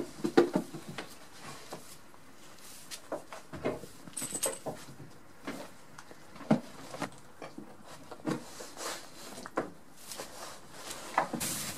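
A goat's hooves tap and scrape on a small wooden stool.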